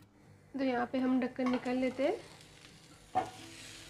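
A metal pot lid is lifted off a pan with a light clink.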